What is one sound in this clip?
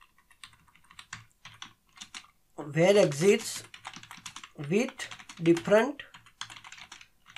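A keyboard clicks with quick typing.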